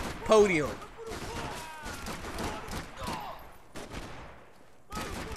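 Gunshots ring out in short bursts.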